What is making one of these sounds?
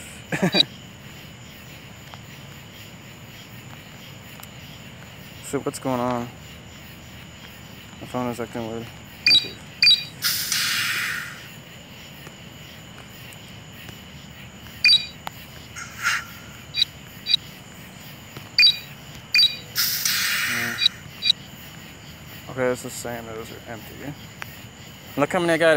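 Short electronic beeps and chimes sound from a game.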